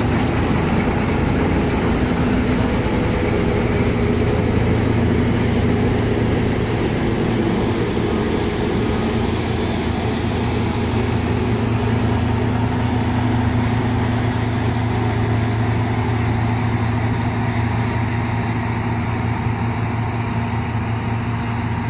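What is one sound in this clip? A diesel combine harvester drones as it cuts wheat and drives slowly away.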